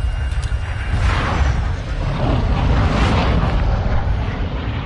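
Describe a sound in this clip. A large plane roars past overhead.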